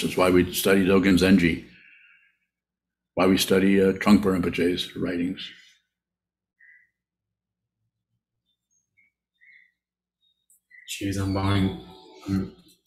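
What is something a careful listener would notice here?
An elderly man speaks calmly in short phrases through an online call.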